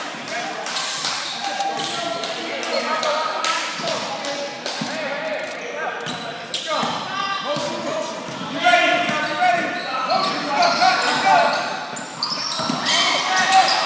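Young players shout and call out to each other.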